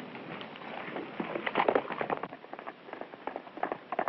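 A horse gallops away over the ground.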